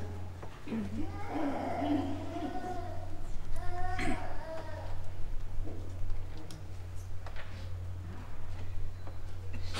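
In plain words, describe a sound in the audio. A crowd murmurs and talks quietly.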